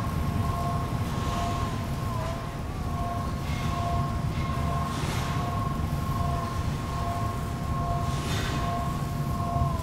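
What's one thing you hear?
Steam hisses in short bursts.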